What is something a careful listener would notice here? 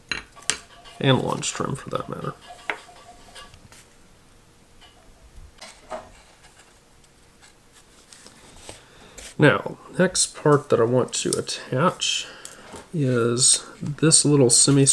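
A man talks calmly and explains, close to a microphone.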